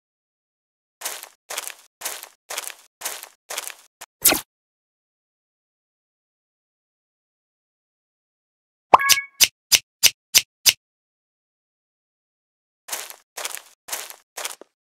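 Light cartoon footsteps patter quickly.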